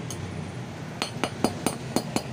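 A hammer taps sharply on metal in quick blows.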